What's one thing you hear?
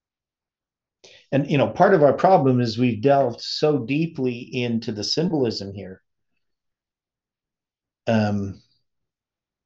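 A middle-aged man speaks calmly and closely into a microphone.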